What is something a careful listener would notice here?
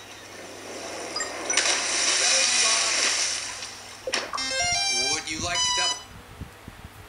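Game sound effects and jingly chimes play from a tablet's small speaker.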